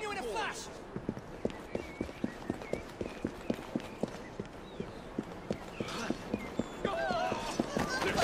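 Footsteps run quickly over stone paving.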